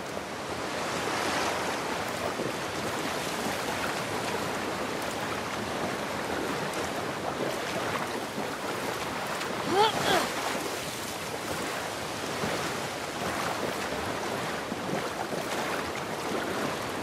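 A waterfall pours and splashes steadily nearby.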